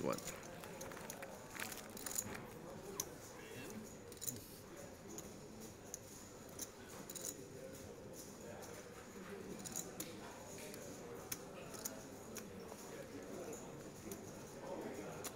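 Poker chips click and clatter as they are shuffled by hand.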